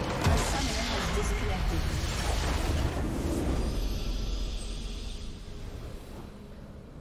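A game's base explodes with a loud roaring blast that fades away.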